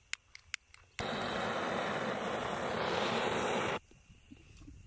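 Gas hisses loudly from a torch.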